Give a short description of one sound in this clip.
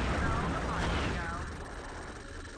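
A burst of bubbly video game sound effects pops loudly.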